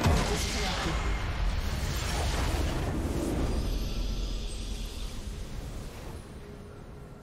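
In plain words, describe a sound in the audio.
A loud rumbling explosion booms and slowly fades.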